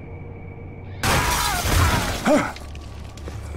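A heavy body is flung through the air and crashes onto stone.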